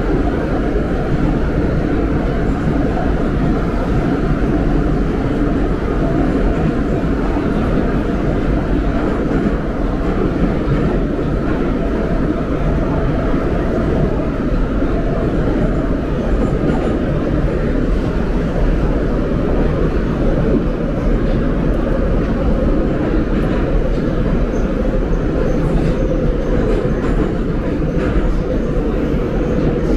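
A subway train rumbles and roars loudly along the tracks.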